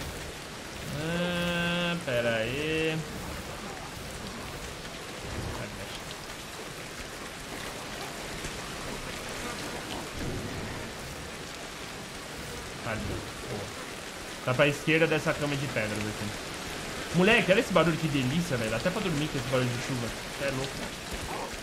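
A young man talks into a microphone with animation, close up.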